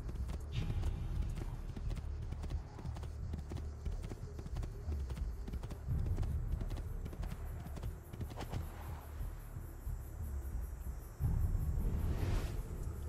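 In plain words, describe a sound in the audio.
Horse hooves gallop rapidly over soft ground.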